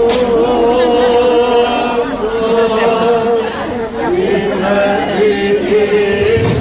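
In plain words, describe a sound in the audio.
A man chants in long, held tones nearby.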